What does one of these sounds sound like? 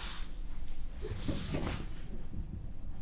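Bedding rustles as a woman sits down on a bed.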